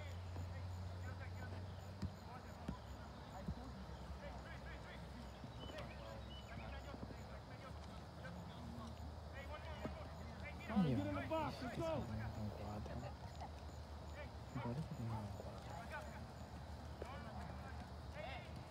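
A soccer ball thuds as it is kicked on grass nearby.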